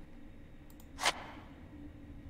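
A small object is picked up with a sharp click.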